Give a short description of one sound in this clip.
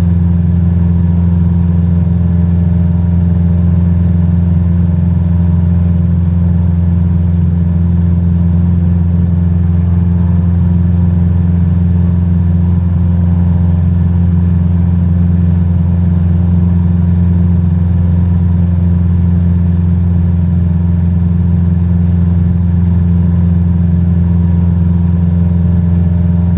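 A small propeller plane's engine drones steadily and loudly from inside the cabin.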